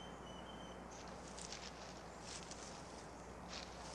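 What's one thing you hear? A hand tool snips through plant stalks.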